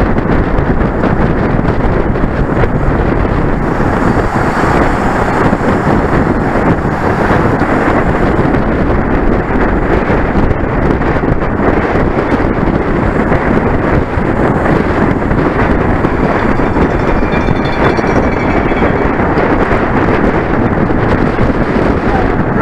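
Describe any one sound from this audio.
Strong wind rushes loudly past the microphone.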